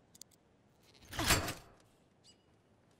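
A chain-link gate swings open with a loud metallic clank.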